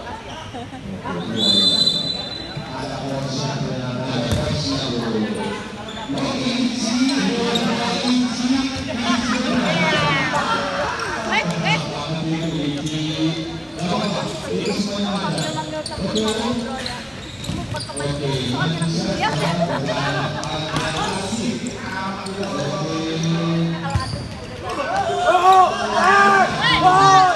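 Young men shout and call out across an echoing indoor hall.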